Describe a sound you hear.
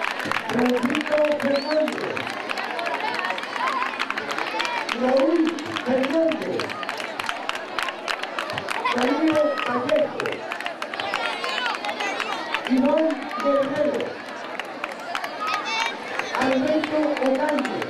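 A crowd of children chants loudly and rhythmically outdoors.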